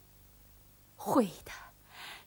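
A middle-aged woman speaks with excitement, close by.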